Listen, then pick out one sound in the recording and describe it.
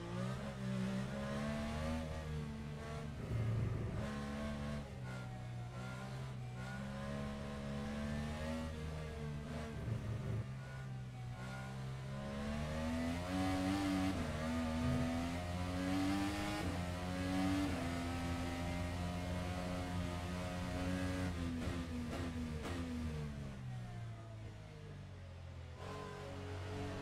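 The engine of a single-seater racing car revs hard and drops as it shifts through gears.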